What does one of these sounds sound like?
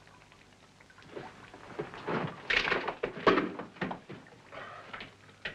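Clothing and boots scrape and shuffle against rock.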